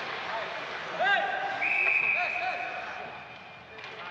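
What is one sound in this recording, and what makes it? A referee's whistle blows shrilly and long.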